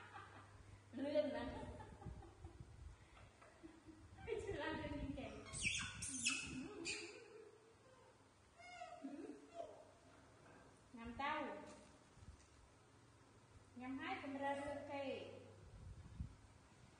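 A woman speaks softly to animals close by.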